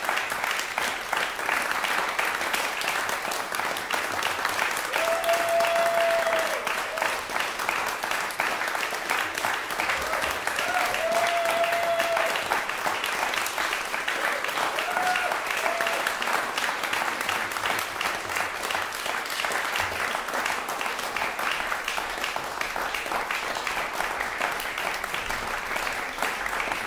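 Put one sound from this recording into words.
An audience applauds steadily in a hall.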